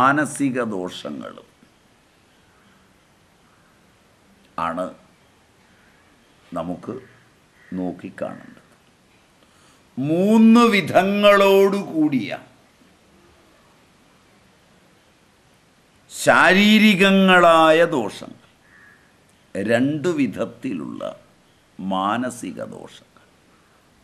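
An elderly man speaks calmly and close by, in short bursts with long pauses.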